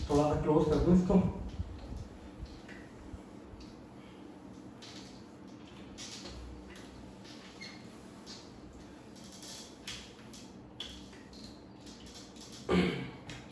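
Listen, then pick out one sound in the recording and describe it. A cloth rubs and squeaks on a whiteboard.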